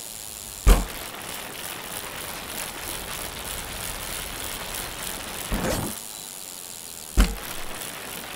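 A bike lands hard with a thud after a jump.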